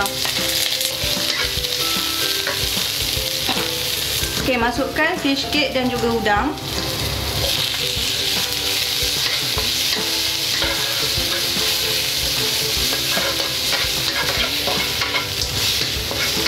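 Food sizzles in hot oil in a pan.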